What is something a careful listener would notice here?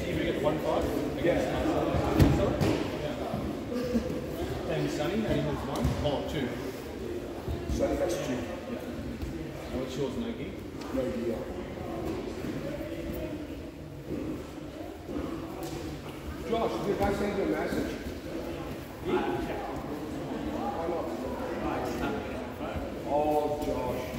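Bodies thud and shuffle on floor mats.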